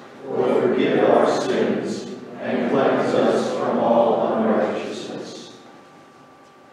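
A man reads aloud through a microphone.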